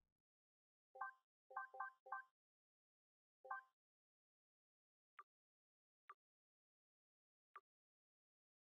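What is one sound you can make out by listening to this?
Short electronic menu blips sound one after another.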